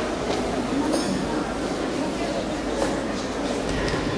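A child's bare feet thud on the floor during a kick.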